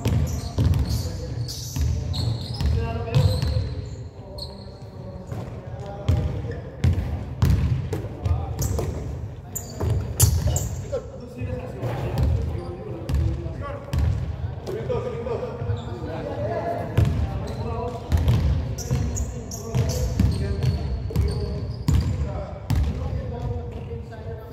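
A basketball bounces on a hard floor in a large echoing gym.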